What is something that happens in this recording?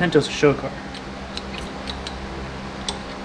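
Small metal tools click against a metal part.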